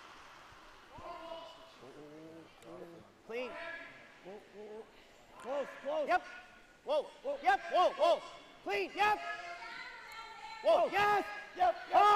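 Men shout loudly and urgently.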